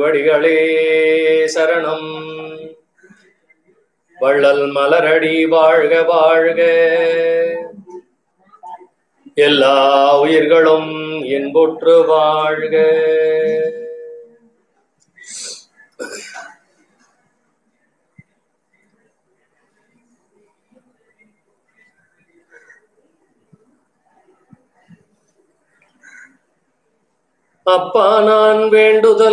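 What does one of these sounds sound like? An elderly man chants slowly in a sustained, melodic voice, close by.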